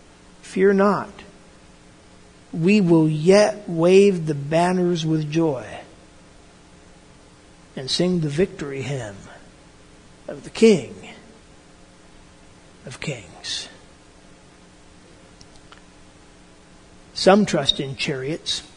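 An elderly man speaks calmly and close by, in short bursts with pauses.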